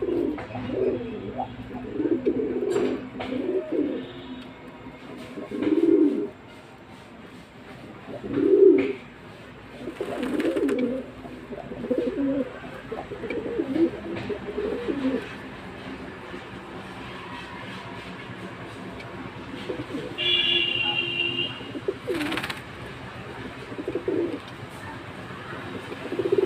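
Pigeons coo softly close by.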